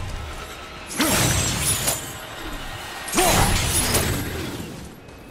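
A burst of magic energy whooshes and crackles.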